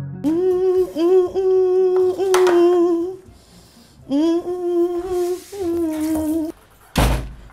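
A woman sings loudly, holding long notes.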